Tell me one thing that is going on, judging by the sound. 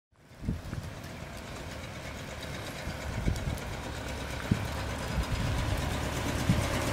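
A car engine hums as it approaches slowly.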